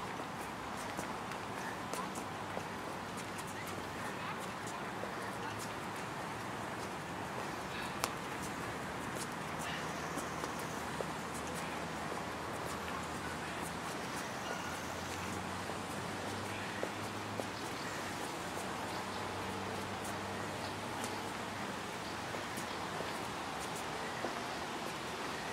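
Footsteps scuff slowly on pavement outdoors.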